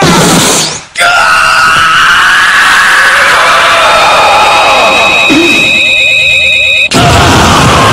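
A man cries out in strain.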